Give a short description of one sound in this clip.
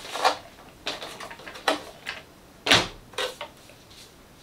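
Plastic parts click and knock as a man handles a toy car.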